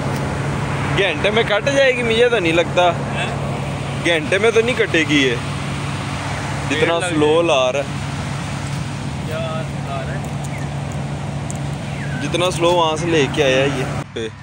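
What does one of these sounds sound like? A man speaks calmly and close by, in bursts.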